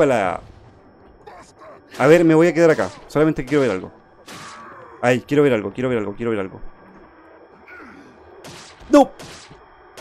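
A blade slashes and thuds into flesh.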